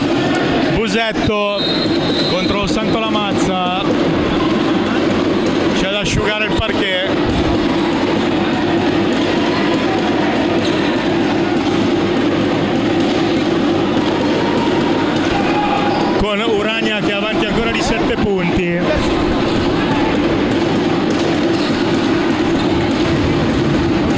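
A crowd murmurs steadily in the stands.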